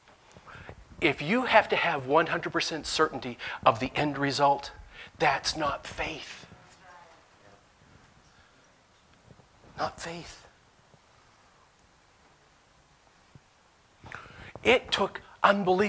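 A man speaks with animation into a microphone in a large echoing room.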